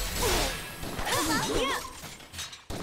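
A sword swooshes through the air with a sharp hit.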